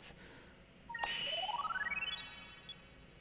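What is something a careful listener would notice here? A short electronic chime sweeps quickly upward in pitch.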